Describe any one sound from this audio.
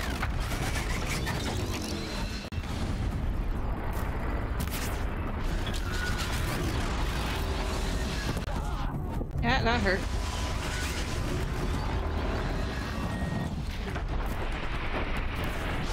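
Electric blasts crackle and zap repeatedly.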